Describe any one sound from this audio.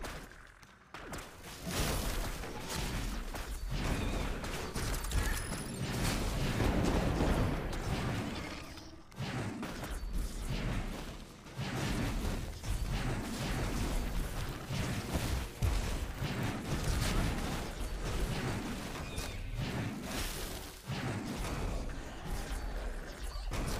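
Magic blasts and crackles burst again and again in a battle.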